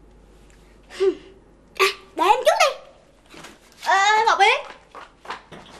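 Another young girl answers calmly.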